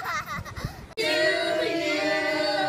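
A group of children sings together.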